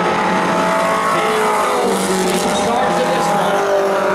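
A race car roars past close by.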